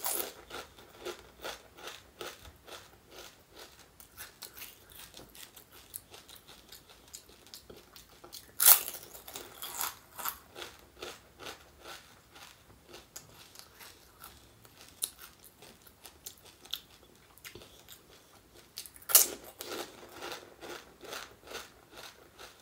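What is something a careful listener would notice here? A woman chews crunchy food loudly and wetly, close to a microphone.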